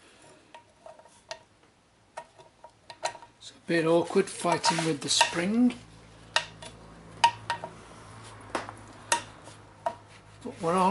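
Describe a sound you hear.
Metal tools clink and click against a metal plate.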